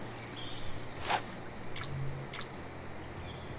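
A fishing line swishes through the air.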